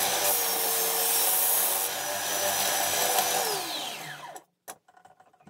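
A belt sander whirs loudly, grinding wood, then winds down.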